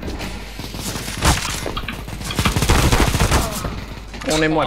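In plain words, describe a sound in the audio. Rapid gunshots ring out.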